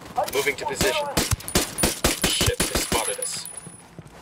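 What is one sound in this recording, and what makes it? A rifle fires a rapid series of shots.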